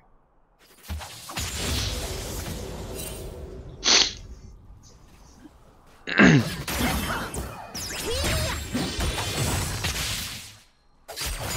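Spell effects and blows clash in a noisy video game fight.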